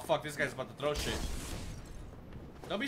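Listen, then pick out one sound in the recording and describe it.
Flames burst with a loud whoosh.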